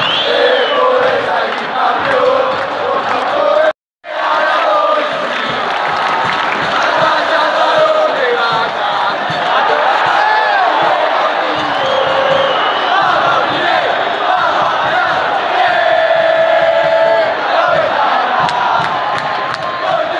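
A huge stadium crowd sings and chants loudly in unison, echoing across the open stands.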